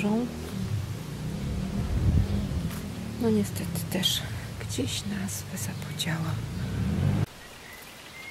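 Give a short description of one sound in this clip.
Wind gusts against the microphone outdoors.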